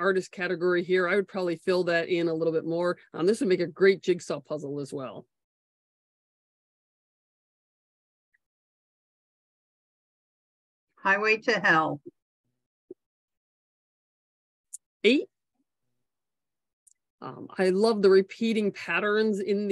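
A woman speaks calmly over an online call, with long pauses.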